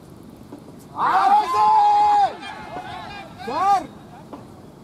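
Several young men shout an appeal loudly outdoors.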